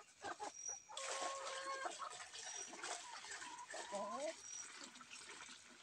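Grain pours out of a bucket onto the ground.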